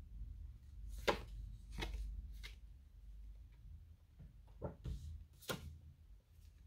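Cards tap and slap softly onto a table.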